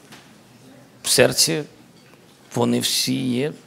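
A middle-aged man speaks close to a microphone in a strained, emotional voice.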